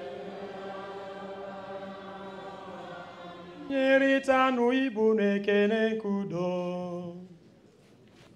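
A man chants in a sustained singing voice through a microphone.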